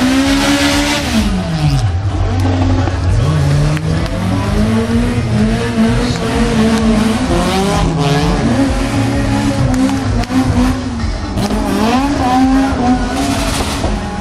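A large crowd of men chants and sings loudly outdoors.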